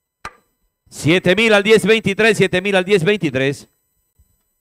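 A man announces loudly over a loudspeaker.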